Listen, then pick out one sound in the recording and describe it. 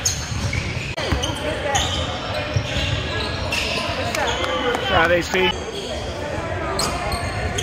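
Sneakers squeak sharply on a court in a large echoing gym.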